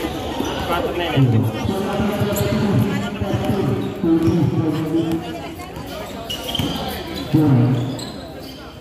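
Men and women talk and call out nearby.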